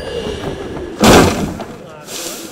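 A body lands with a heavy thump in a pile of hay.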